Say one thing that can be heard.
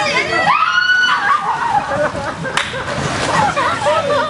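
Water splashes as a young woman wades into a pool.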